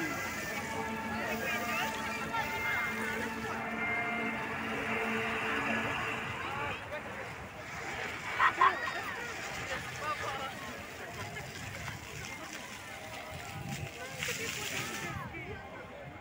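Fountain jets spray and splash onto water.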